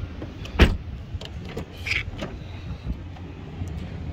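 A car door clicks open.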